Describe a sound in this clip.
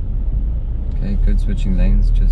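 A man speaks close by inside the car.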